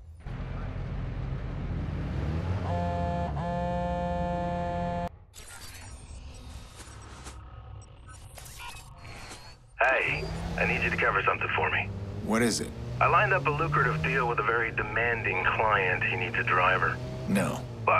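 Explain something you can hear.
A car engine hums as the car drives.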